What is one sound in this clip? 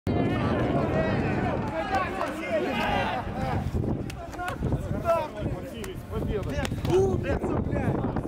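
Several men shout and cheer excitedly close by.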